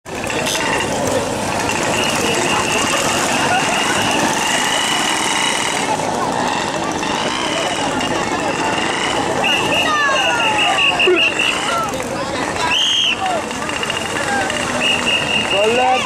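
A crowd of people chatter and call out outdoors.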